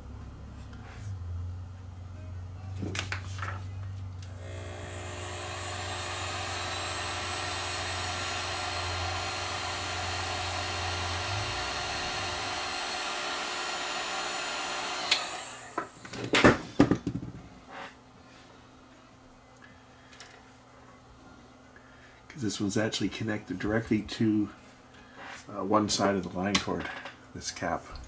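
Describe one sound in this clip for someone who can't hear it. Small metal parts click and tap as hands work on wiring.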